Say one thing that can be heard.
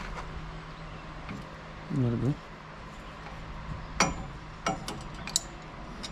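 Metal hose fittings click and clank as they are connected by hand.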